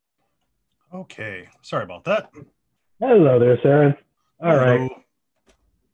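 A young man talks over an online call.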